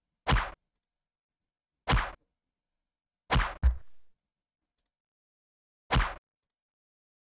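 Arrows strike soldiers in short, sharp bursts.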